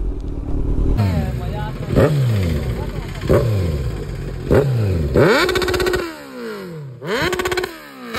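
A motorcycle engine idles and revs in short sharp bursts nearby.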